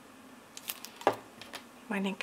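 A plastic bottle is set down on a wooden table with a knock.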